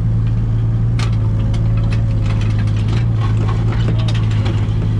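Earth and rubble scrape and clatter in a digger bucket.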